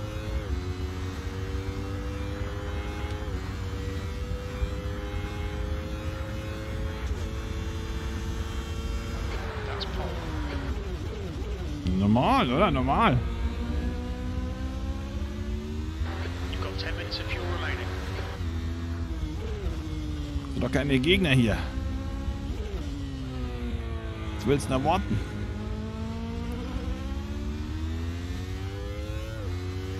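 A racing car engine revs high and changes pitch as gears shift up and down.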